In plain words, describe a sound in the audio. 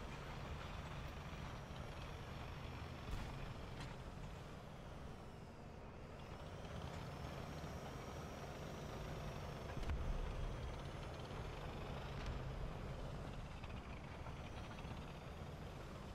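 A tank engine rumbles low and steady.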